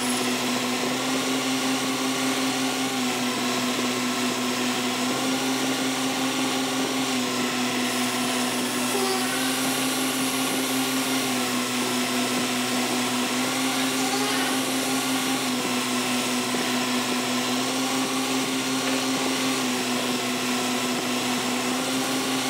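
A lathe motor hums steadily.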